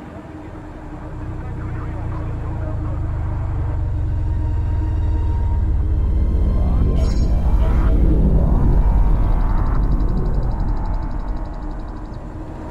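A spacecraft's engines roar louder as it speeds through a tunnel and out into open space.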